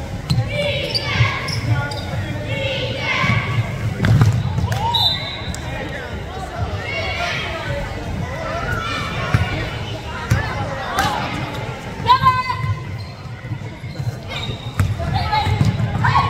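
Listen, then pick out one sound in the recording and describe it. Young women shout and call out to each other in an echoing gym.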